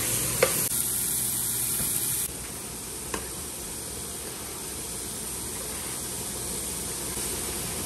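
Food sizzles softly in a pan.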